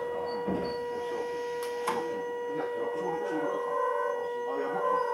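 An electric train motor hums with a steady whine.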